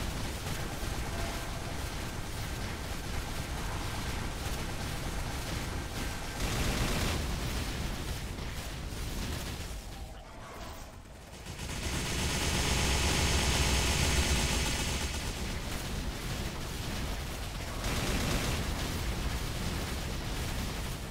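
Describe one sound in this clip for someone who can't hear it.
Fiery magic blasts and strikes crash over and over.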